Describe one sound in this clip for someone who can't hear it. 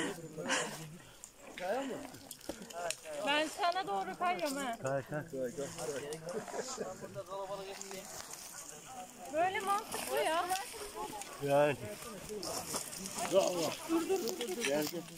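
Footsteps crunch on dry leaves and grass.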